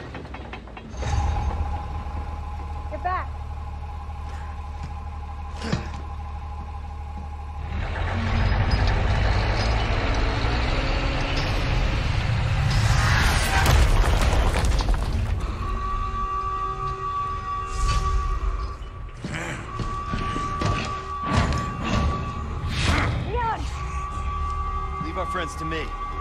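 A crane engine rumbles loudly.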